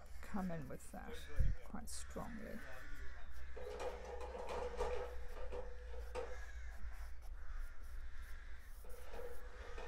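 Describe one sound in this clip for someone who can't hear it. A cloth rubs softly against a canvas.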